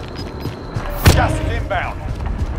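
A rifle is handled with a metallic clatter as weapons are switched.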